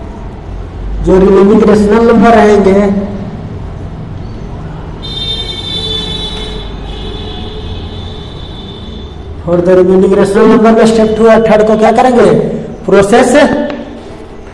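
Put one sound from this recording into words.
A young man speaks calmly and explains, close by.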